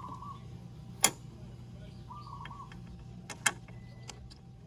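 Metal parts click and clink.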